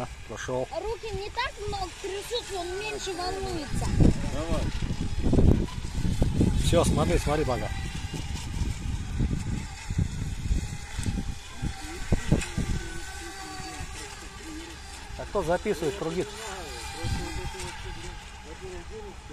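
Small model motorboats whine as they speed across the water.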